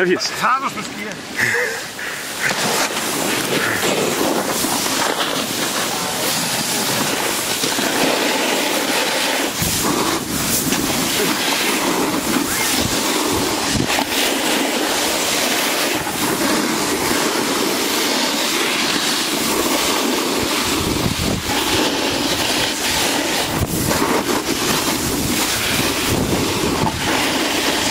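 A snowboard scrapes and hisses steadily over packed snow.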